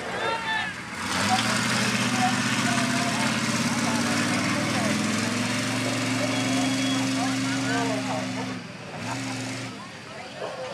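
A pickup truck engine roars loudly as it accelerates hard.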